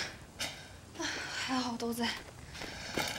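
A young woman speaks quietly to herself.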